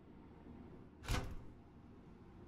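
A cab door swings open with a dull thud.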